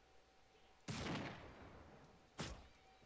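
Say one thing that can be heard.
A rifle shot cracks and echoes.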